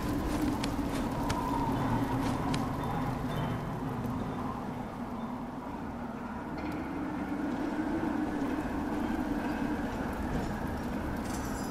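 Hands grip and scrape stone while climbing a wall.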